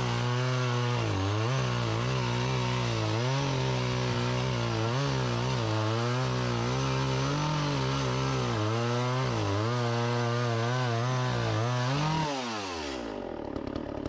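A chainsaw engine runs loudly and revs up and down while cutting wood, then winds down.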